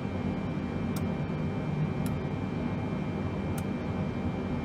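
Switches click sharply a few times.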